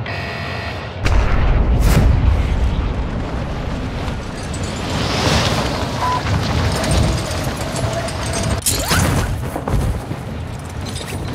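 Wind rushes loudly past during a fast fall.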